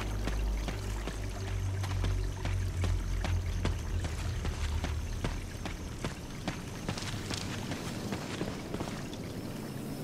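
Footsteps run quickly over a rough path.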